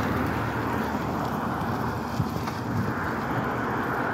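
A van drives past close by.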